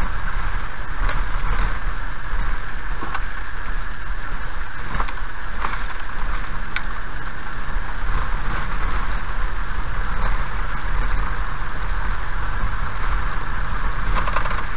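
Tyres crunch and rumble over a gravel road.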